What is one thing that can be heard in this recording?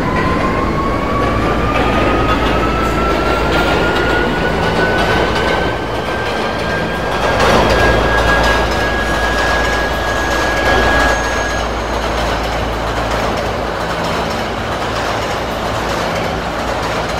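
A subway train rumbles and rattles along the tracks.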